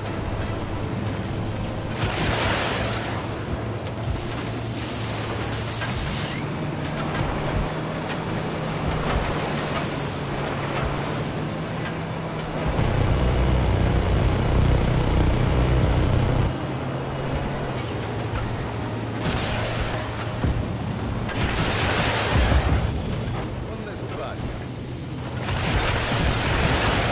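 A boat engine roars steadily at speed.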